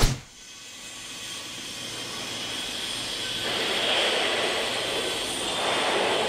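An electric arc welder crackles and hisses steadily.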